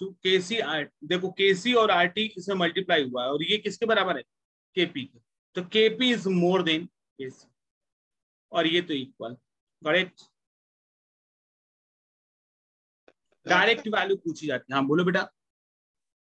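A young man lectures calmly into a microphone, heard close up.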